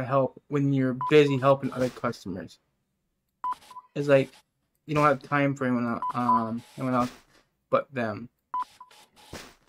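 A checkout scanner beeps.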